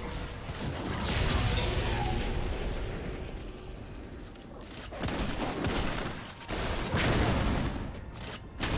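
Game spells blast and crackle in a fast fight.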